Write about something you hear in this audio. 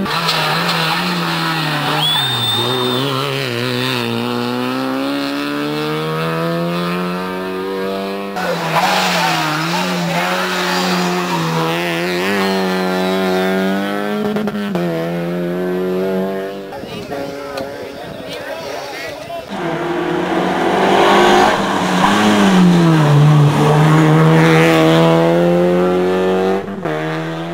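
A rally car engine revs hard and roars past, rising and falling in pitch as it shifts gears.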